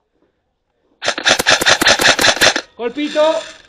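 An airsoft gun fires a rapid burst of shots close by.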